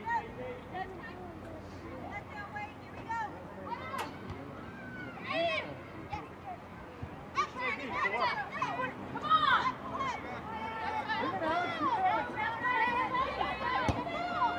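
Young women shout and call out across an open field, growing louder and more excited.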